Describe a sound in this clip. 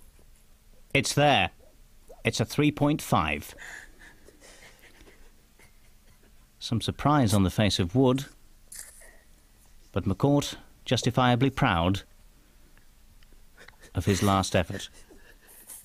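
A young man laughs loudly and breathlessly nearby.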